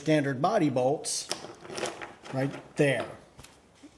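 Loose metal bolts clink as hands handle them.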